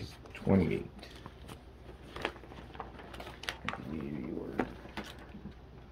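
A plastic card sleeve crinkles as a card slides in.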